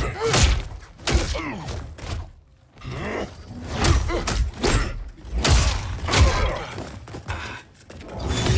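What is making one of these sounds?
Heavy punches and kicks land with loud thuds.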